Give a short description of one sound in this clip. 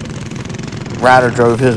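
A small kart engine revs sharply higher.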